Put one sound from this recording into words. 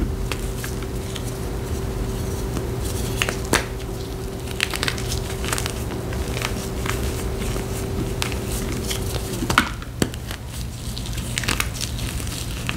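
Gloved hands crumble a chalky block, which cracks and crunches.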